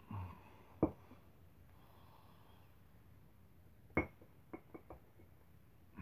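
A metal block knocks and clinks against a concrete floor.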